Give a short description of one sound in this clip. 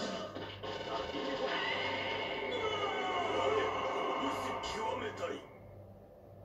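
A fighting video game blasts loud hits and explosive effects through a television speaker.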